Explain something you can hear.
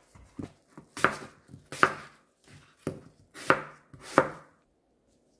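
A knife cuts through crisp apple onto a cutting board.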